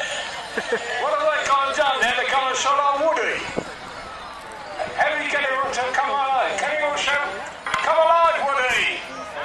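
A man speaks loudly to an outdoor crowd.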